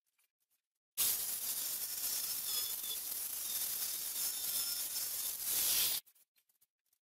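A router whines loudly as it cuts wood.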